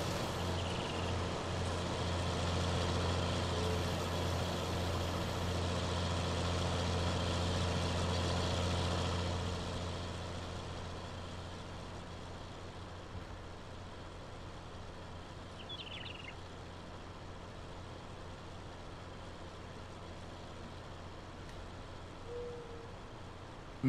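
A tractor engine rumbles steadily and then drives off.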